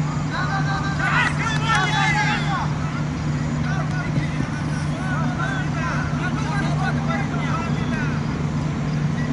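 Young men shout excitedly from across an open field.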